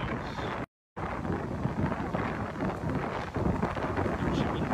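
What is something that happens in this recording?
Small waves wash gently onto a shore.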